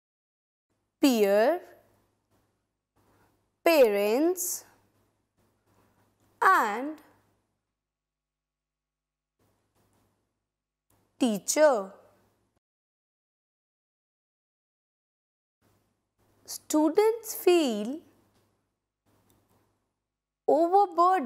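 A woman speaks expressively into a close microphone, in short phrases with pauses.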